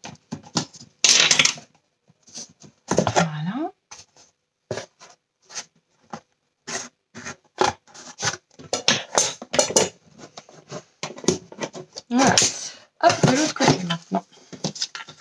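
A cardboard box thumps and scrapes on a table as it is turned over.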